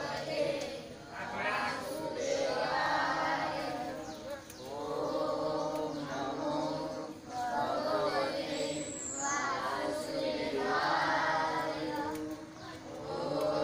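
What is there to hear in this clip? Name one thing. A group of men and boys chant together nearby in long repeated phrases.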